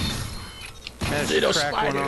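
A gun fires rapid shots with a sharp crackle.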